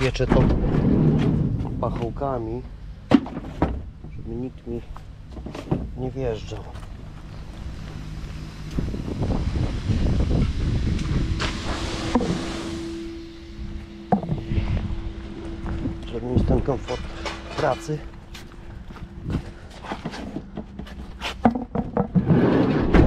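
Footsteps scuff on paving stones.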